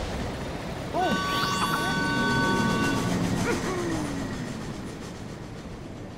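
A flying ship's engine hums as the ship lifts off.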